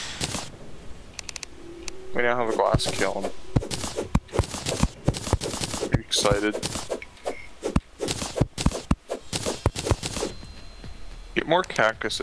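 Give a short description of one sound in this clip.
A pickaxe chips at rock in quick, repeated knocks.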